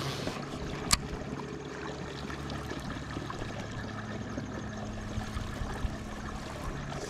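A fishing reel whirs as it is cranked.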